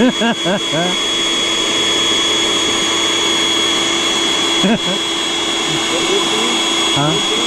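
A small electric pump whirs steadily as it blows air into a mattress.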